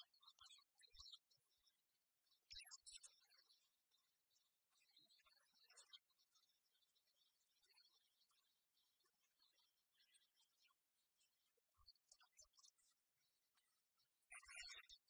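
Bright, chiptune-style game music plays.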